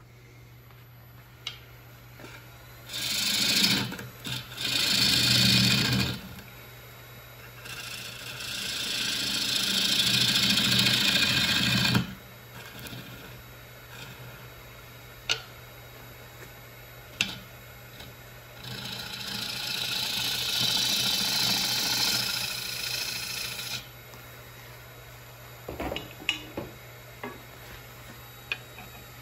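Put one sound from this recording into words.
A lathe hums steadily.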